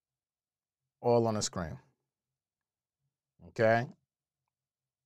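A man speaks calmly and close into a microphone, in two short phrases.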